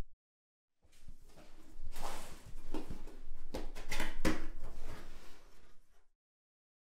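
Hands slide and scrape against a cardboard box as it is opened.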